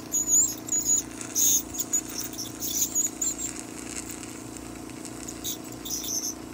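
An ultrasonic dental scaler hisses in short bursts close by.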